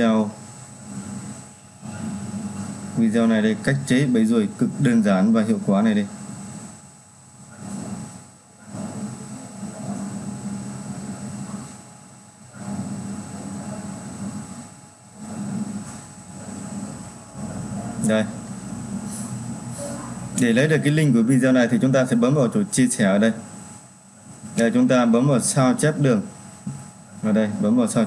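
A man talks calmly and steadily close to a microphone.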